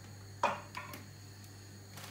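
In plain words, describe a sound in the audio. Wooden blocks knock against a stone counter.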